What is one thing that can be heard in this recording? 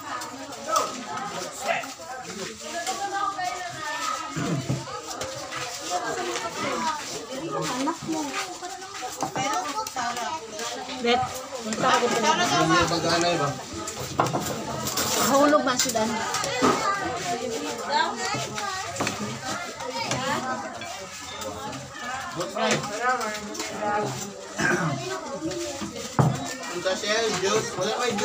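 Several men and women chat and laugh nearby outdoors.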